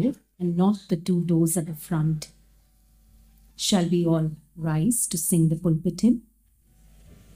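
A man speaks calmly through a microphone in a large hall.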